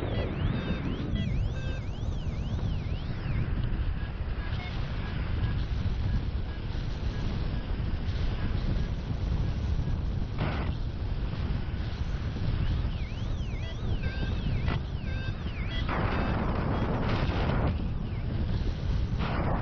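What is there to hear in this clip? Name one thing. Wind rushes and buffets loudly, outdoors high in the open air.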